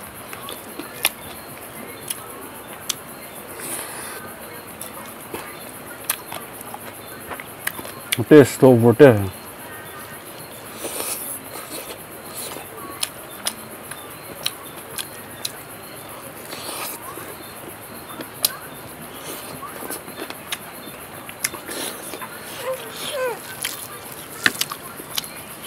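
Fingers squish and scrape through food on a plate.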